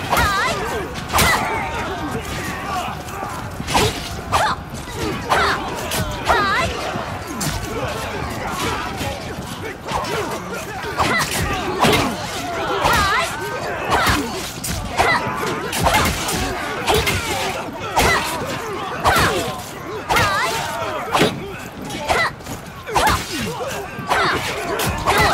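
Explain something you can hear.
Swords clash and strike in a fast, busy fight.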